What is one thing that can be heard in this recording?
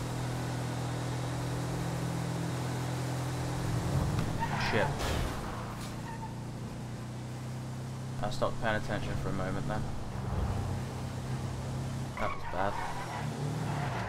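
Tyres roll on a wet road.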